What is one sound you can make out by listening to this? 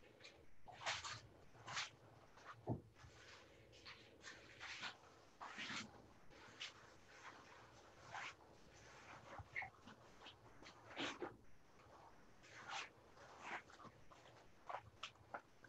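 Foil crinkles and rustles as hands handle it.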